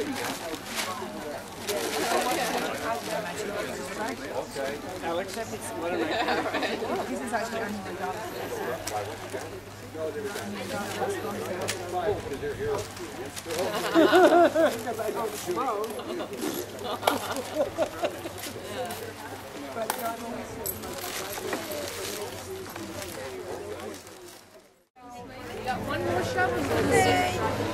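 A crowd of adults chatters nearby outdoors.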